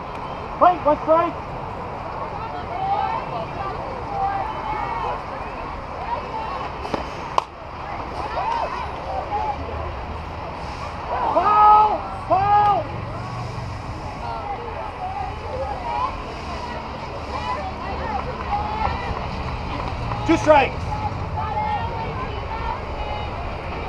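Young women shout and cheer from across an open field.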